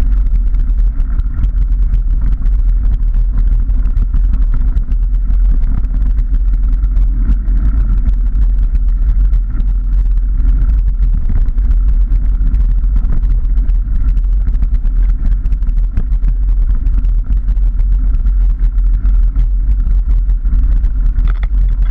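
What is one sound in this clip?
Tyres crunch and rattle over a rough gravel track.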